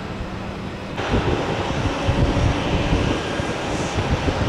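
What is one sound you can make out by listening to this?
A commuter train rumbles past in the distance.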